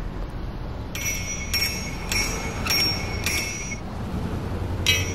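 Metal clanks and rings sharply in the distance.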